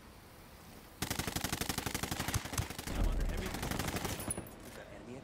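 A rifle fires in rapid bursts nearby.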